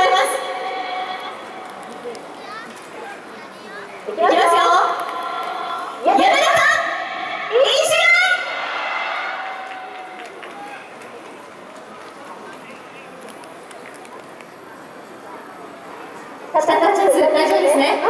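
A large crowd of fans chants and sings together in an open stadium.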